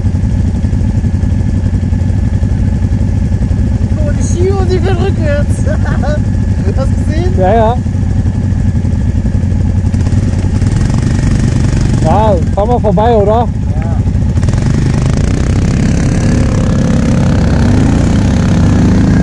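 A quad bike engine idles and rumbles steadily.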